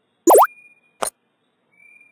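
A wooden puzzle piece clicks into place.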